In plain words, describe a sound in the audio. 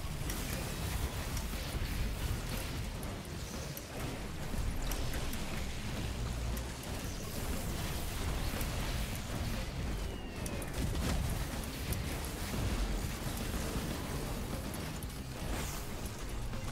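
Rapid gunfire crackles and pops in bursts.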